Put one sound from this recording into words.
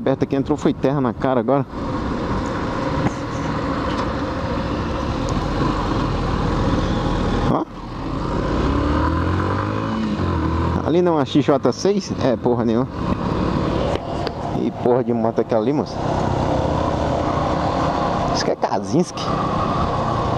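A motorcycle engine revs up and down in quick bursts.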